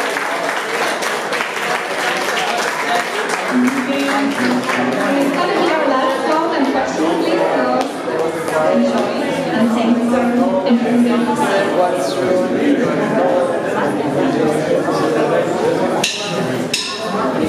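A live band plays rock music with electric guitars and drums.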